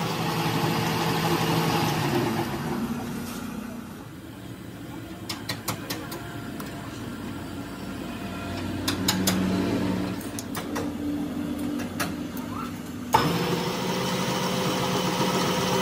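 A lathe hums and whirs as it spins.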